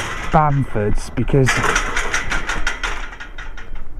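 A metal gate clanks and rattles as it swings.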